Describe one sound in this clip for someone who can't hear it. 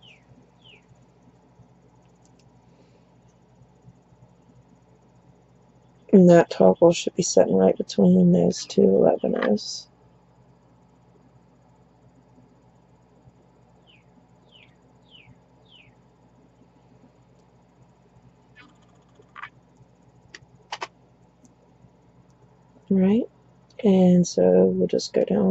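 Small beads click softly against each other as they are handled.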